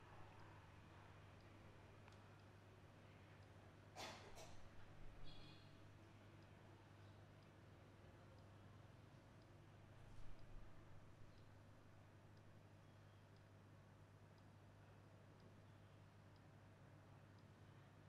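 A countdown timer ticks softly once each second.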